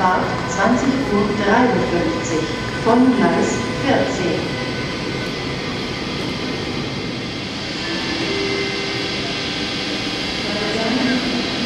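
An electric train rolls slowly into an echoing station hall with a steady rumble.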